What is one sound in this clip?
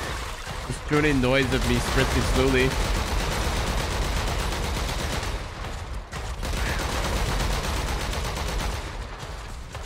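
Energy weapons fire in loud bursts.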